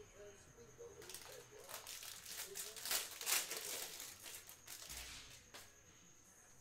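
A card pack crinkles and rips open.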